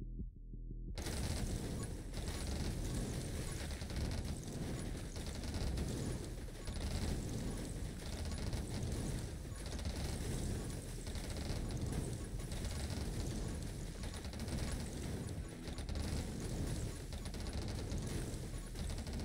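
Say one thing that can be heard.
Rapid video game gunfire crackles without pause.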